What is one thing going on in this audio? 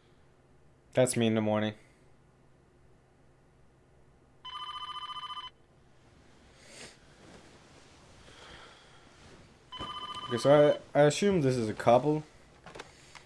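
A young man speaks briefly into a close microphone, reacting to something.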